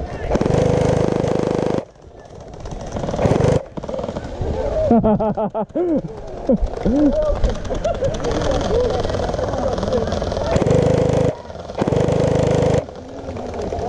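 A toy gun fires rapid bursts with a buzzing whir.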